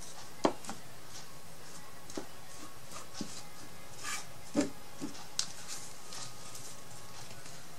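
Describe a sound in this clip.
A brush dabs and scrapes on a surface.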